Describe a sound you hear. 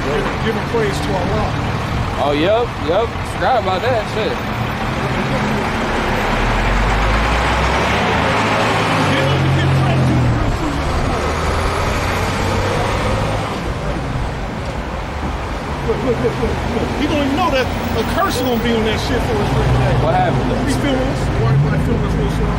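Traffic rushes past on a busy road.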